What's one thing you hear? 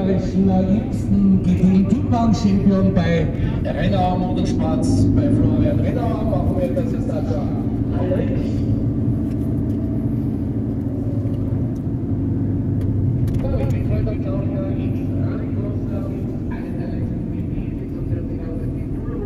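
A car engine hums steadily while driving slowly.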